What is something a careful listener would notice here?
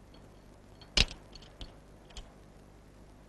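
Metal handcuffs click and clink.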